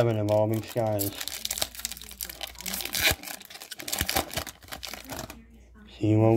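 A foil wrapper crinkles and tears.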